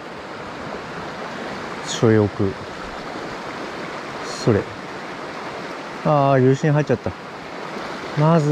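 A shallow stream rushes steadily over stones.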